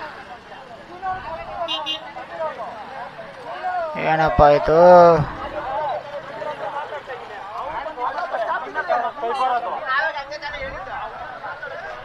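Men talk loudly nearby in a crowd outdoors.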